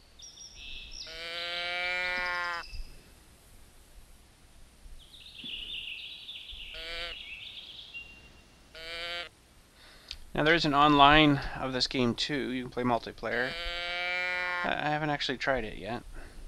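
A game call bleats in short, pitched bursts.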